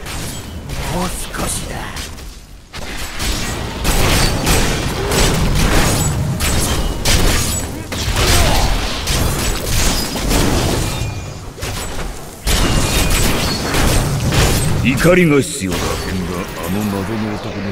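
Weapons clash and hit in a noisy fight.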